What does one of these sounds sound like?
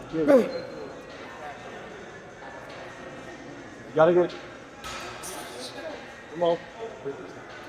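A young man grunts and strains with effort close by.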